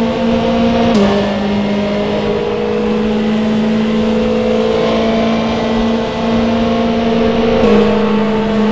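A racing car engine briefly drops in pitch as gears shift up.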